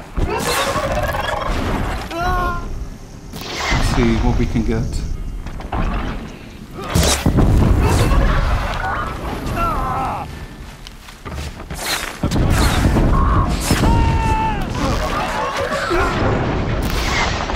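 Machine creatures shriek and screech in short rising cries.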